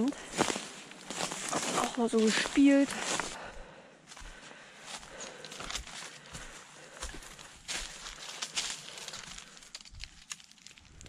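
Footsteps crunch and rustle through dry fallen leaves.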